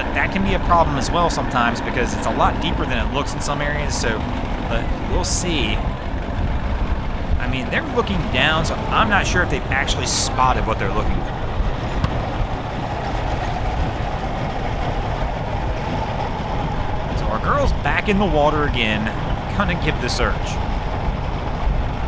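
A man talks loudly nearby, outdoors.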